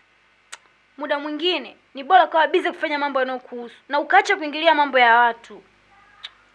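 A young woman speaks with emotion nearby.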